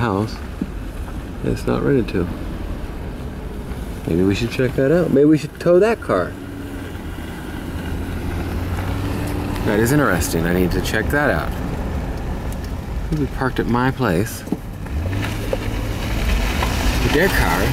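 A car engine rumbles low and steady from inside the car as it drives slowly.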